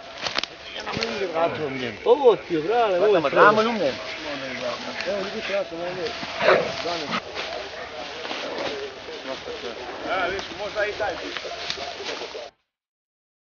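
Several men talk nearby outdoors.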